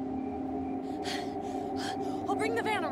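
A young woman calls out urgently.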